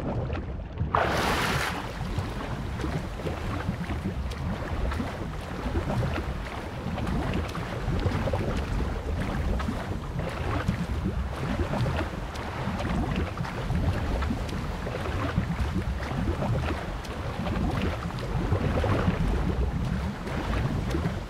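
Choppy waves slosh around a swimmer.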